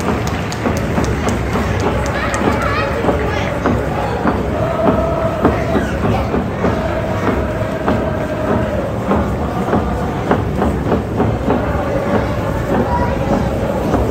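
A crowd of fans claps along to a rhythm.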